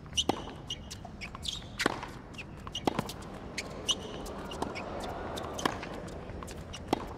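A tennis ball is struck hard back and forth.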